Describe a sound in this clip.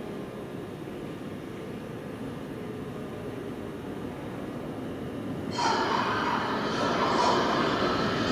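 A subway train rumbles into an underground station, growing louder as it approaches.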